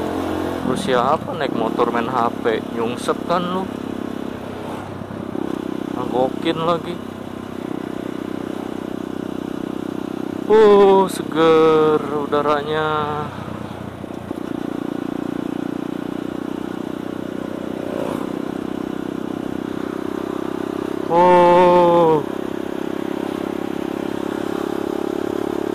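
A motorcycle engine hums steadily close by as it rides along.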